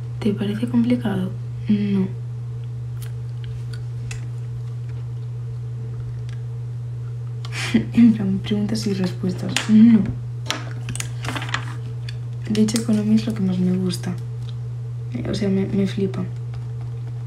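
A young woman talks casually, close to a phone microphone, in short bursts.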